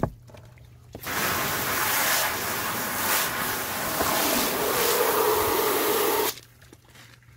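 Water is poured out of a plastic tub onto the ground.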